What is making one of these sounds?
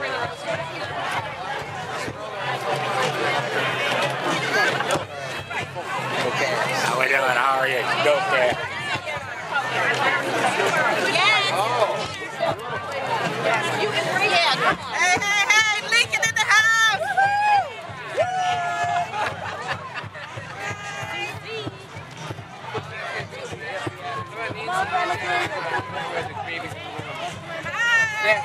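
A crowd of men, women and children chatters and calls out all around, outdoors.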